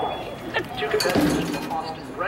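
An athlete lands with a thump on a padded mat.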